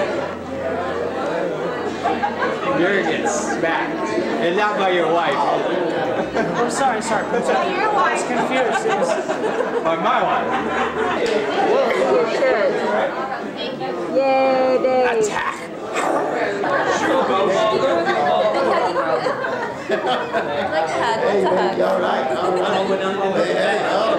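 A crowd of men and women chatters and laughs all around.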